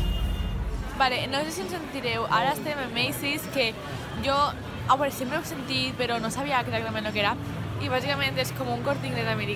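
A young woman talks close to a microphone, with animation.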